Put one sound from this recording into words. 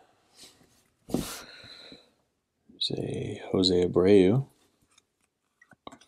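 Trading cards slide and rustle softly between fingers.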